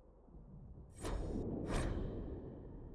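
A soft interface chime sounds twice as a menu page turns.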